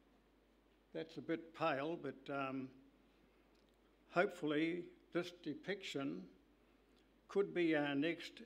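An elderly man speaks calmly into a microphone, in pauses.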